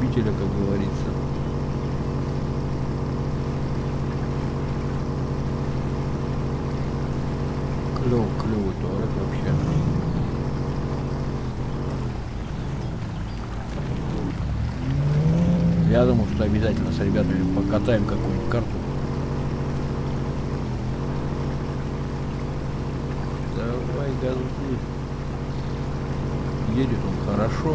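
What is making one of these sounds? A car engine drones steadily and revs at times.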